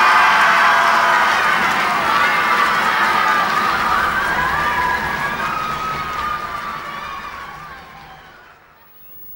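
A concert band plays a sustained chord in a large hall and the sound slowly dies away.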